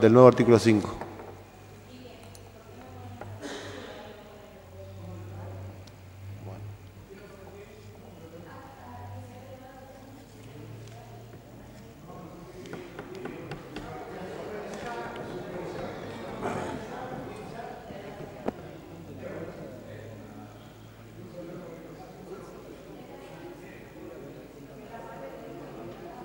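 A person speaks calmly through a microphone in a large room.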